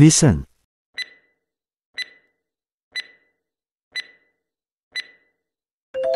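A countdown timer ticks once a second.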